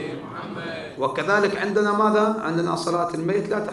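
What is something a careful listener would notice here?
A man chants in a wavering, sung voice into a microphone.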